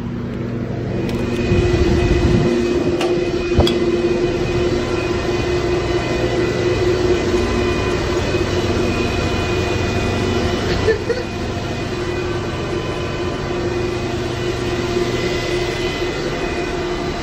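Machines hum and whir steadily inside a small room.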